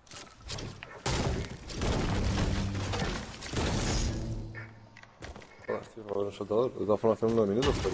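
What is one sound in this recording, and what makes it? A pickaxe strikes wood and stone with dull thuds.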